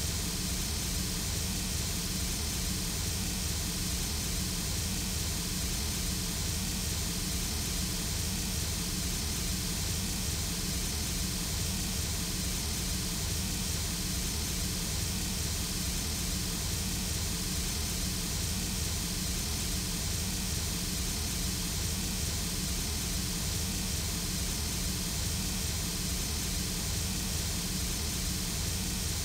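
A steam locomotive idles nearby with a steady, low, throbbing rumble and hiss.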